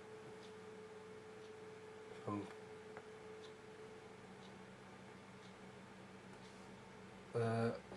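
A paintbrush softly brushes across paper.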